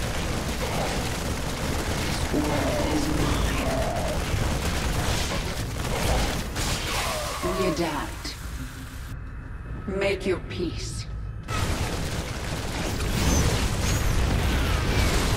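Weapons fire in bursts during a battle.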